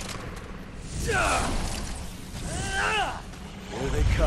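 A monster shrieks with high, wavering cries.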